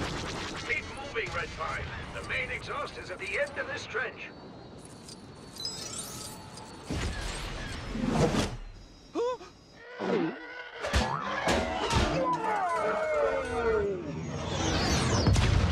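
Starfighter engines roar past.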